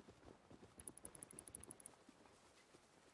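Footsteps crunch on grass and earth.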